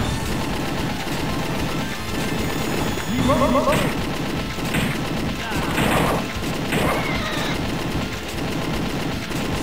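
Video game explosions burst again and again.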